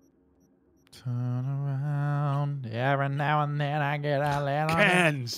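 A man speaks in a drawn-out, sing-song voice close to a microphone.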